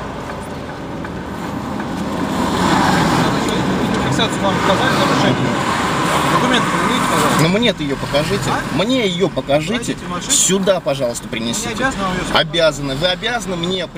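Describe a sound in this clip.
Men talk just outside a car window.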